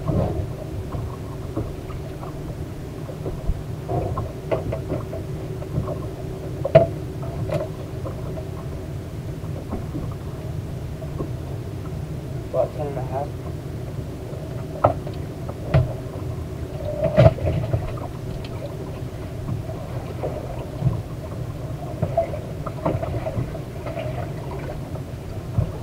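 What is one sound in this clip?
An outboard motor hums steadily.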